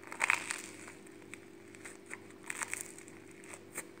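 A man chews crunchy bread close up.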